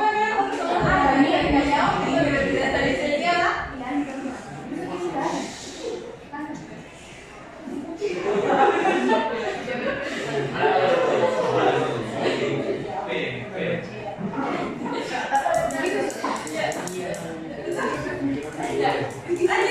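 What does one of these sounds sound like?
A young woman speaks calmly to a group.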